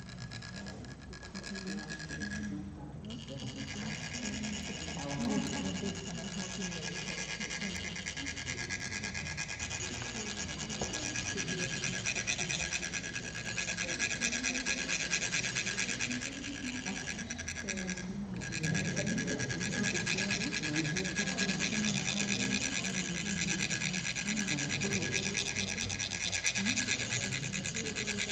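Metal funnels rasp steadily as they are rubbed.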